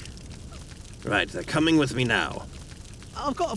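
A man answers in a deep, calm voice.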